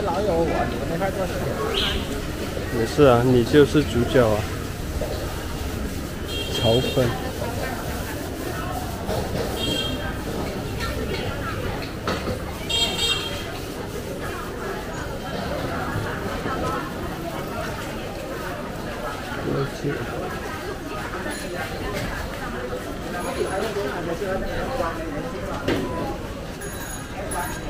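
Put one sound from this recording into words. A crowd of people chatter all around on a busy street.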